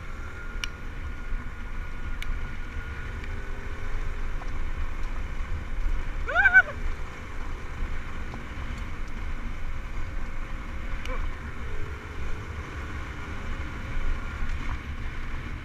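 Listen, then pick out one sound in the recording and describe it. Tyres rumble over a gravel dirt track.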